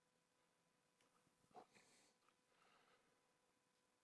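A man speaks quietly and close to a microphone.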